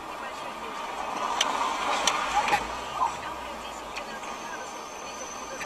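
A car engine hums steadily from inside a moving car.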